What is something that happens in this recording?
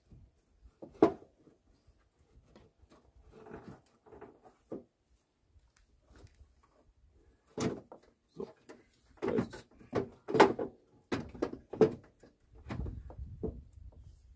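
A plastic headlight clicks and rattles.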